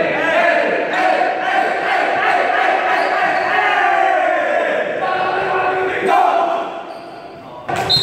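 Young men chant together loudly in an echoing hall.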